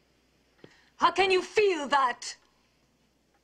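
A young woman speaks in an upset, pleading voice close by.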